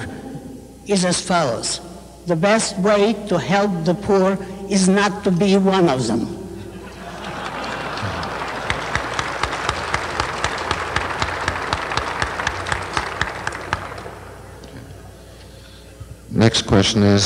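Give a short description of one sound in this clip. An elderly woman sings into a microphone.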